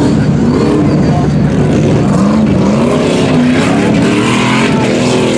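An off-road vehicle's engine revs up and down loudly.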